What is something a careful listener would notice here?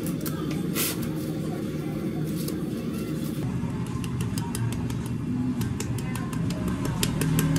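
A metal scoop scrapes and drops ice cream onto a drink.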